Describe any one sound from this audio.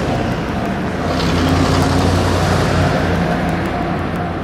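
A car passes close by with a rising and fading whoosh.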